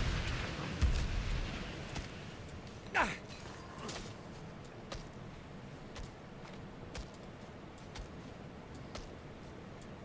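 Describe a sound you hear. Sharp combat hits thud and clang in steady succession.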